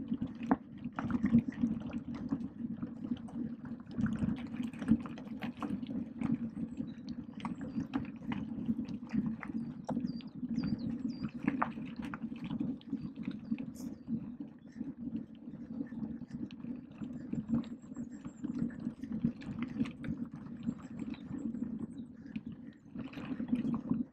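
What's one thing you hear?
Bicycle tyres crunch and rattle over a rough gravel track.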